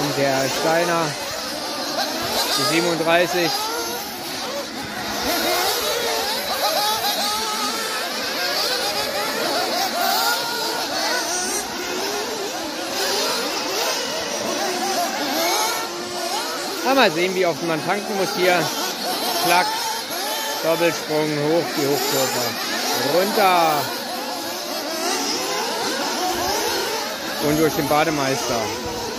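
Nitro-engined 1/8 scale RC buggies scream, their pitch rising and falling as they race around a track.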